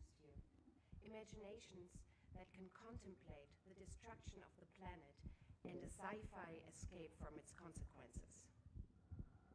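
A young woman speaks softly and close up.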